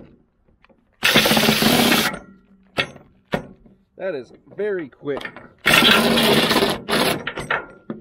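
A cordless drill whirs in short loud bursts.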